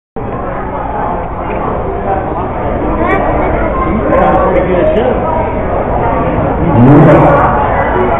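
A crowd chatters loudly in a noisy room.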